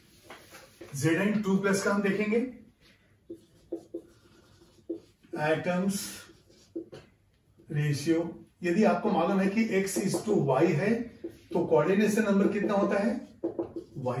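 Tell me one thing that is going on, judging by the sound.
A man lectures calmly and clearly, close by.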